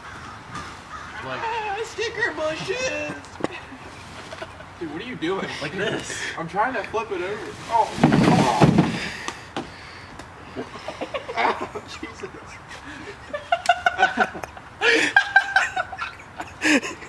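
Teenage boys talk to each other outdoors.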